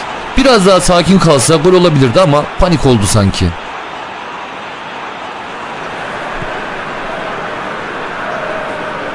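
A large stadium crowd murmurs and cheers steadily in the background.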